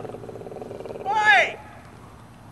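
A young woman shouts outdoors.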